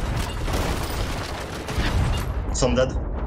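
An explosion roars and crackles.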